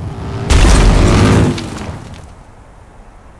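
A motorcycle engine roars loudly, then quickly fades.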